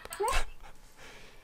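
A young woman squeals with laughter close by.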